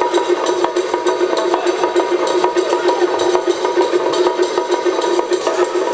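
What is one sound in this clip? Drums pound in a fast, steady rhythm in a large echoing hall.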